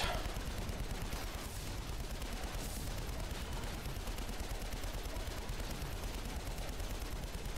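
Game lasers and guns fire in rapid bursts.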